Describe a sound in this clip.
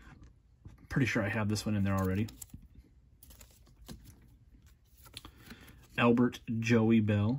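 Cards in plastic sleeves rustle and tap softly in hands.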